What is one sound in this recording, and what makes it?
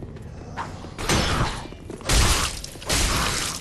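Swords clash and slash in loud bursts.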